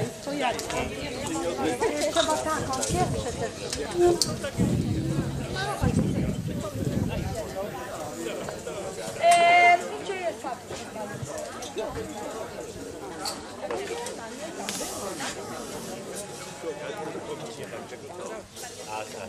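A woman speaks calmly into a microphone, heard over a loudspeaker outdoors.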